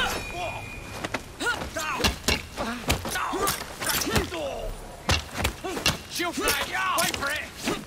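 Punches and blows land with heavy thuds in a fistfight.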